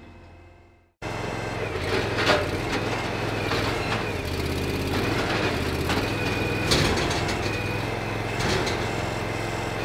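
An engine runs steadily nearby.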